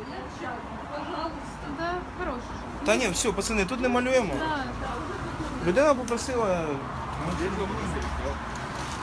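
Men talk loudly close by.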